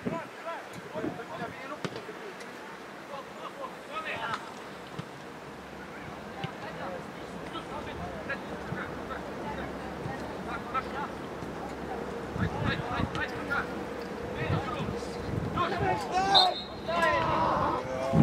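Players shout to each other across an open field, heard from a distance.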